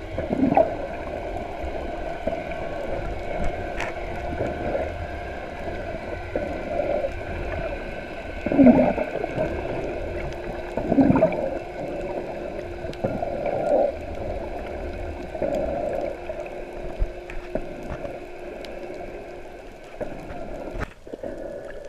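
Air bubbles gurgle underwater.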